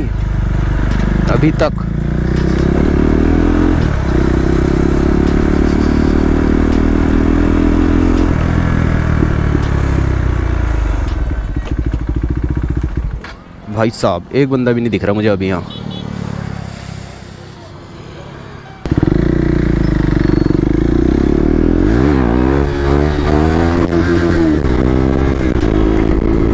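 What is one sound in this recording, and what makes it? A motorcycle engine roars close by, revving up and down as it accelerates.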